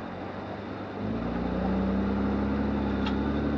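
A motorbike engine revs up louder.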